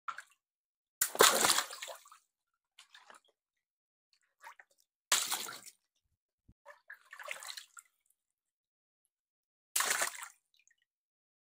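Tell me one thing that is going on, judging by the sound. A water balloon bursts with a loud splash.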